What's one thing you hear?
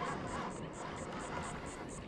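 A fishing reel clicks as line is wound in.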